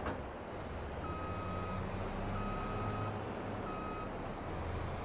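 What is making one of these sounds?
A machine beeps in short repeated tones.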